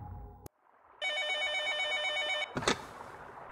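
A desk phone rings with an electronic trill.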